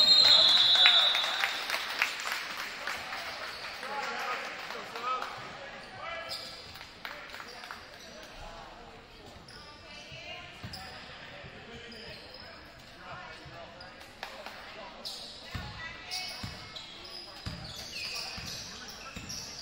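A crowd cheers and shouts in a large echoing gym, then quiets down.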